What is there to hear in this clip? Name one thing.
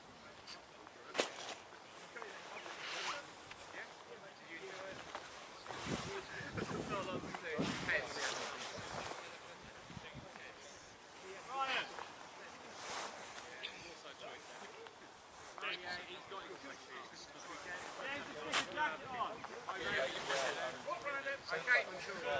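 Male players shout to each other across an open field, some way off, outdoors.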